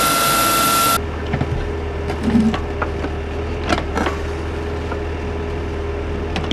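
A small digging machine's engine rumbles steadily.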